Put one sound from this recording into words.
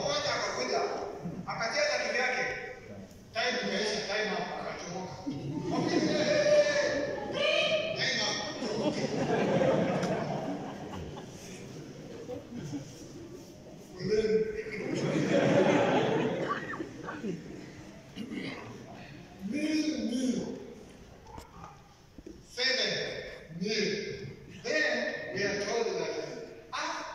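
A man preaches through a microphone and loudspeakers, speaking with animation in a large echoing hall.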